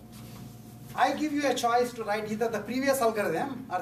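A middle-aged man lectures calmly in a room, heard from a short distance.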